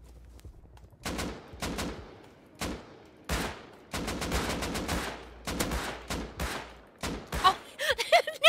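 A rifle fires single shots that echo.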